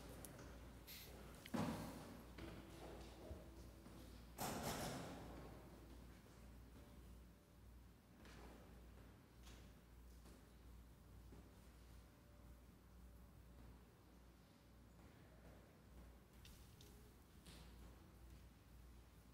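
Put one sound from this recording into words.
A man speaks quietly through a microphone in an echoing hall.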